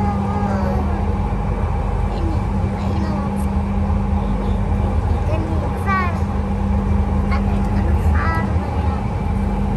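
A toddler babbles close by.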